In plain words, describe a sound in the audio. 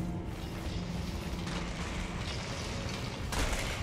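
Footsteps patter on stone in an echoing space.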